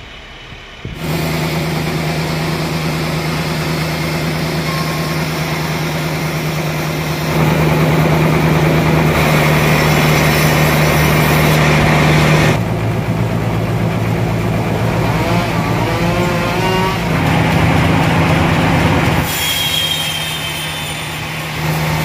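A sawmill's band saw drones loudly and steadily as it cuts through a log.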